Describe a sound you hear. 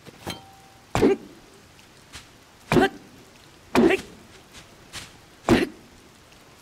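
An axe chops into a tree trunk with heavy thuds.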